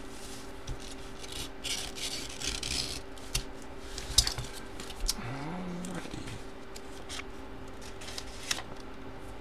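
Paper rustles and tears as a card pack is opened by hand.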